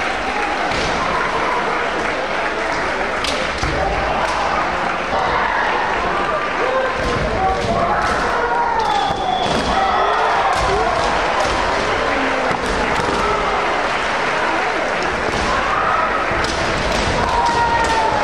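Many voices of spectators chatter and call out in a large echoing hall.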